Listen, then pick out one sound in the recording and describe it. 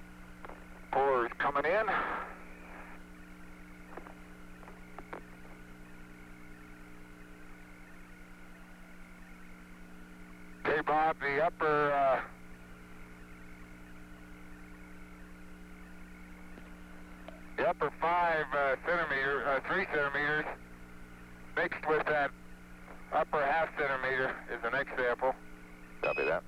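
A man speaks in short bursts over a crackly radio link.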